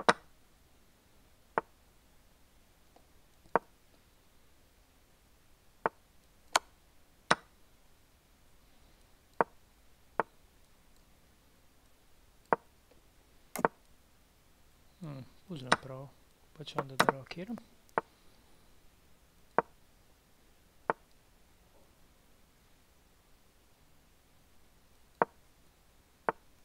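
Chess pieces click sharply into place as moves are made, now and then.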